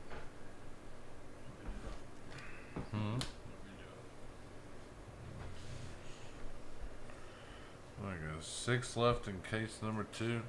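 Trading cards rustle and tap as hands handle them.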